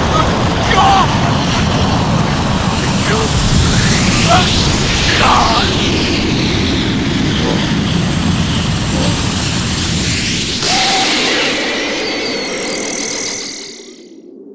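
A powerful energy blast roars and rushes loudly.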